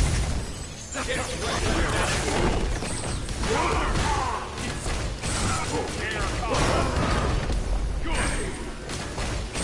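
Game punches and blasts crash in quick bursts.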